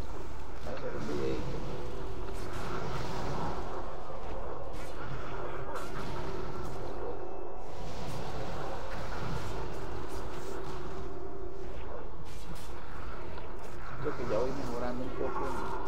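Fantasy game spell effects and combat sounds play steadily.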